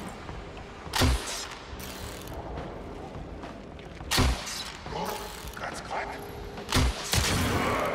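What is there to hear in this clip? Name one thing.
A heavy weapon strikes with a sharp thud.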